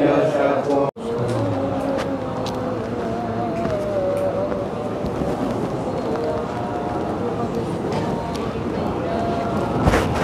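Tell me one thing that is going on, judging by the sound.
A crowd of men chant softly in the background.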